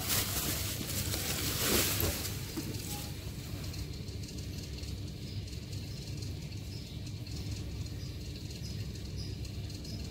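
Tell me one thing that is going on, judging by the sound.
A cardboard box scrapes lightly as it is handled.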